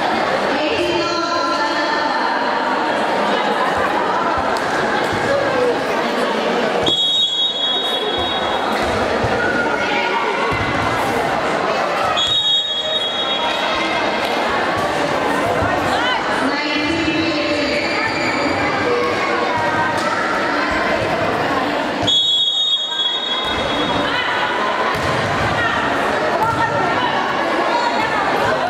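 Young women players shout and call to each other in a large echoing hall.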